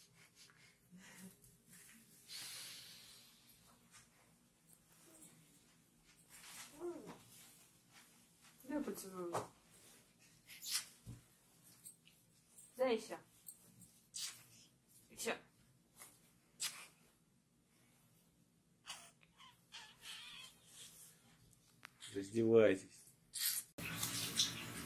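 A young woman talks softly and affectionately to a baby close by.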